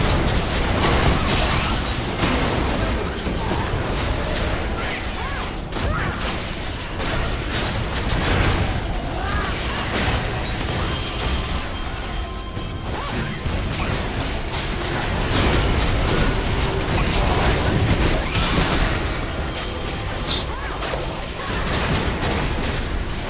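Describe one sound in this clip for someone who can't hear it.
Game spell effects crackle and clash in a battle.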